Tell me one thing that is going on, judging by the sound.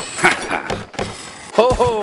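A skateboard grinds along a metal rail.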